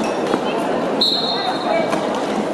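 A referee blows a short, shrill whistle.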